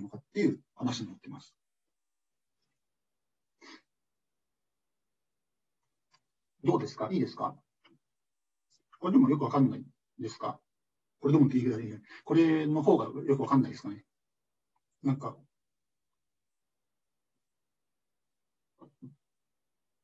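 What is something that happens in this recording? A young man speaks calmly in bursts over an online call.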